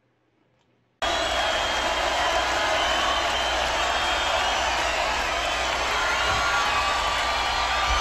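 An electric guitar plays a loud, distorted solo at a live concert.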